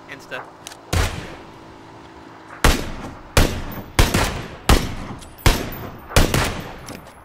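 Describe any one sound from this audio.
Loud rifle shots fire one after another.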